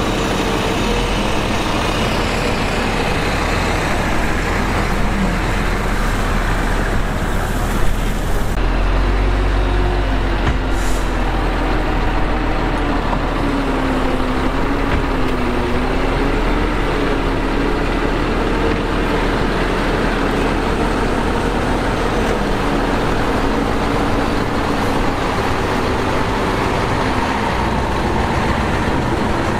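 Bulldozer tracks clank and squeak as they move.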